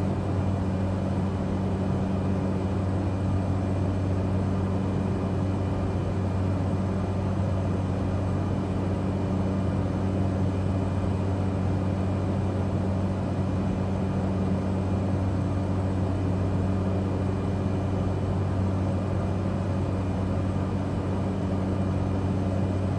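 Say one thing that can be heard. A small propeller plane's engine drones steadily from inside the cockpit.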